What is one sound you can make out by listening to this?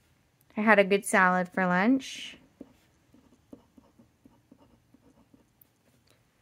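A pen scratches softly on a card.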